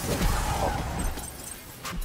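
A magic blast bursts with a crackling whoosh.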